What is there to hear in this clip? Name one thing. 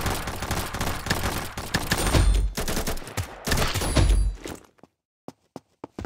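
Gunshots bang in a game.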